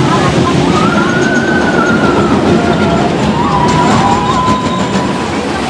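Riders scream as a roller coaster train rushes past.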